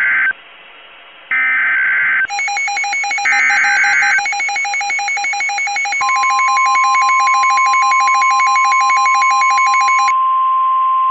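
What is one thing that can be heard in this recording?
A weather radio gives short, harsh electronic data bursts.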